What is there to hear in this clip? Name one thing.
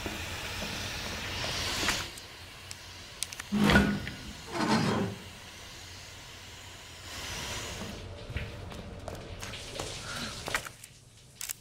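Steam hisses steadily from a pipe.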